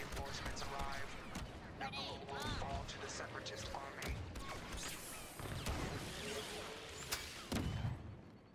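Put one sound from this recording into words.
Sci-fi laser blasters fire in short bursts.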